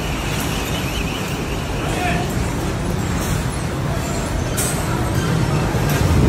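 A bus engine rumbles as the bus passes close by.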